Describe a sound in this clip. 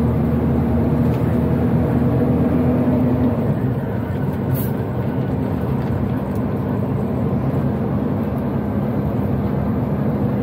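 Tyres roll and rattle over a rough dirt road.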